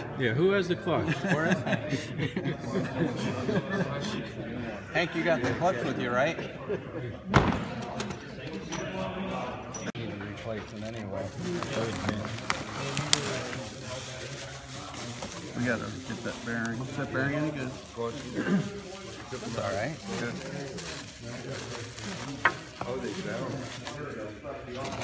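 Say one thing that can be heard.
Men talk nearby in a calm, casual way.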